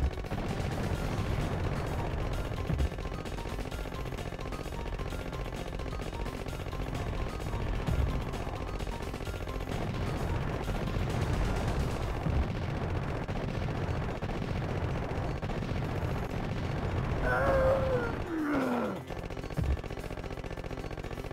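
Explosions boom and flames roar in a video game.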